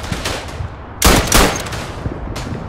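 A rifle fires loudly close by, twice.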